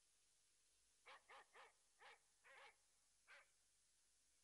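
A dog barks sharply several times.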